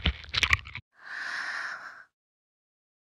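A young girl bites and chews wetly.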